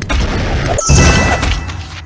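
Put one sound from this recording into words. Game sound effects whoosh and clash during a fight.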